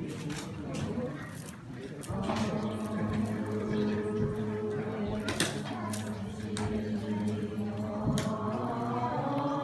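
A crowd of men and women murmur and talk nearby.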